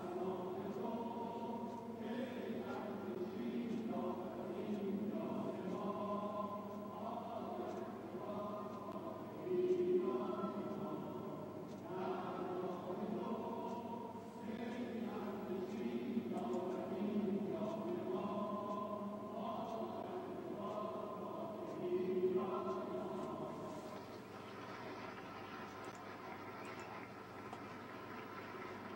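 A large crowd chants together in an echoing hall.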